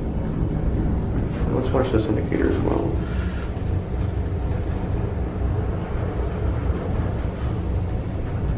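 An elevator hums steadily as it rides up.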